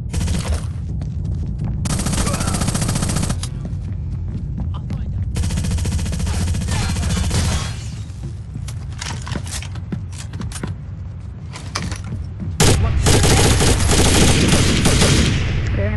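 A rifle fires shots.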